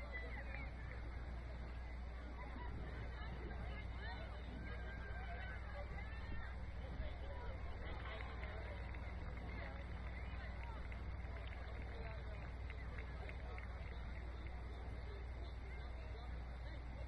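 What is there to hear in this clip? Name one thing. Young women call out to each other across an open field in the distance.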